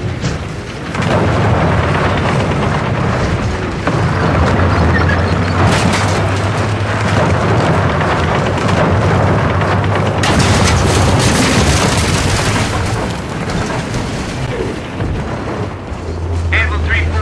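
A tank's tracks clatter and grind over rubble.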